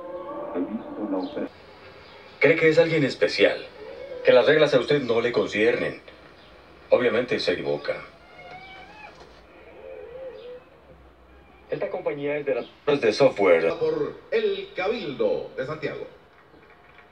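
A man speaks through a television loudspeaker.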